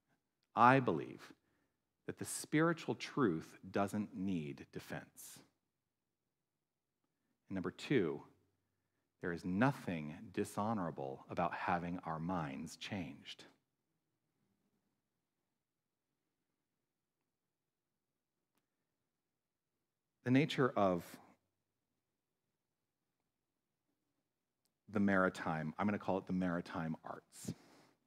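A middle-aged man speaks with animation into a microphone, with pauses.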